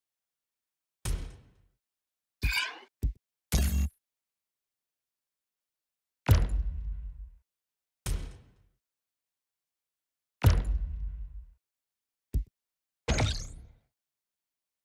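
Short electronic game sounds whoosh and chime now and then.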